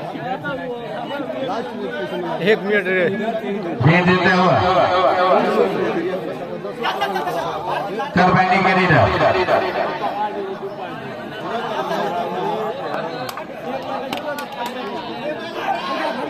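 A large outdoor crowd shouts and cheers throughout.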